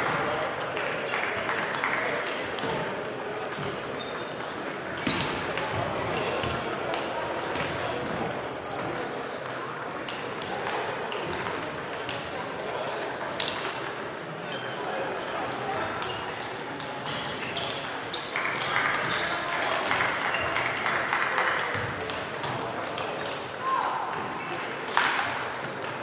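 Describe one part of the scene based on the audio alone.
Table tennis balls click on bats and tables all around in a large echoing hall.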